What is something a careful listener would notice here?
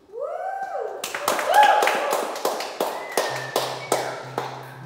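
An acoustic guitar is strummed close by in a large echoing room.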